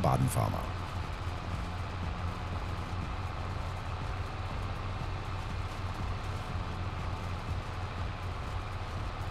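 A hay tedder rattles and whirs behind a tractor.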